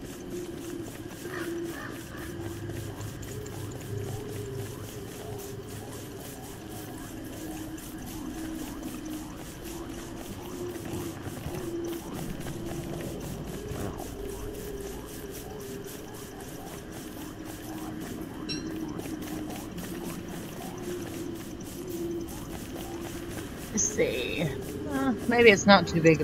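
Footsteps shuffle steadily over dry ground.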